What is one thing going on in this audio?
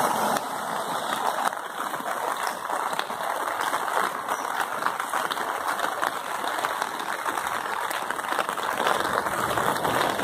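Floodwater rushes and roars steadily outdoors.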